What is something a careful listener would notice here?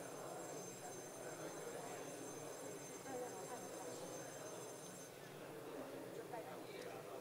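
A crowd of men and women talk and murmur over each other in a large echoing hall.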